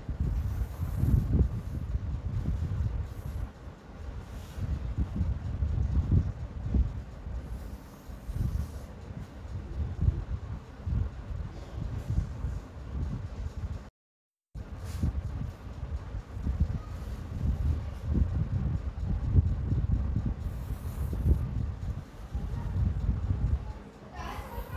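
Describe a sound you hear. A pencil scratches along a ruler on paper.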